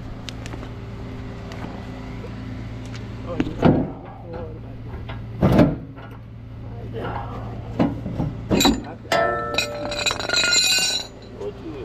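A gloved hand rubs against a tyre.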